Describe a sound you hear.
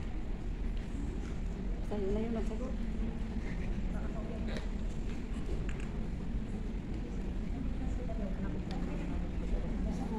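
A crowd of women chatters in a large echoing hall.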